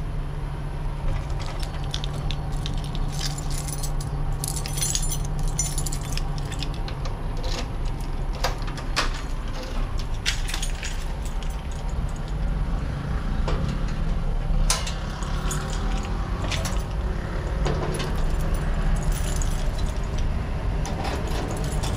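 Keys jingle and rattle in a lock.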